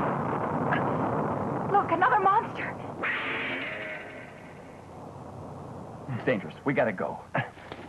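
A young woman speaks anxiously nearby.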